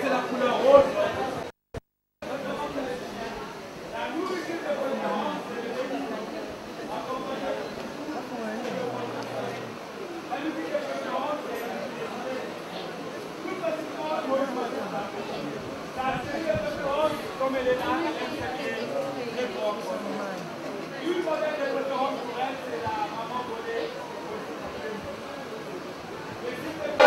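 A crowd of people chatters and talks in a large room.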